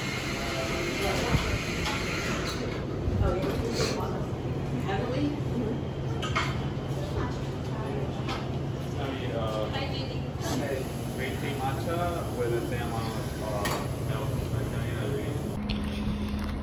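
People talk nearby in a busy room.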